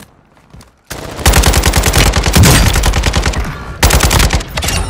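An automatic rifle fires loud, rapid bursts.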